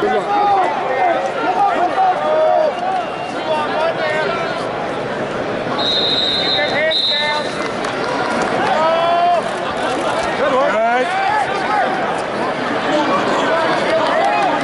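A large crowd shouts and cheers loudly, echoing all around.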